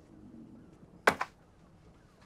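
A bundle of banknotes slaps down onto a glass tabletop.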